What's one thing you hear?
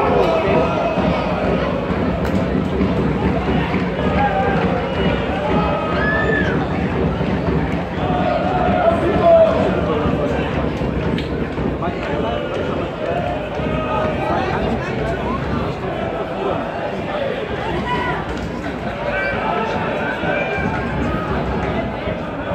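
A stadium crowd chatters and murmurs nearby.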